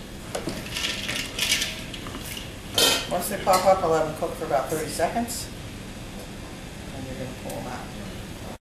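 Water bubbles at a boil in a pot.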